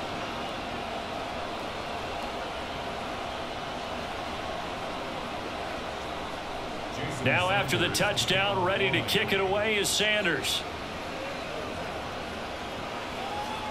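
A large stadium crowd roars steadily in the distance.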